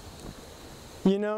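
A young man starts speaking calmly in a large room.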